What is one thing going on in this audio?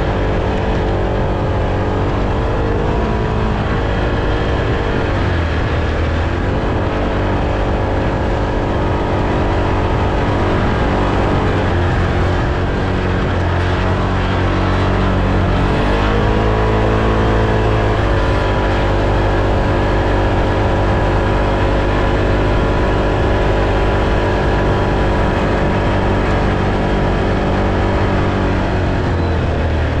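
A small engine drones loudly and changes pitch as the vehicle speeds up and slows down.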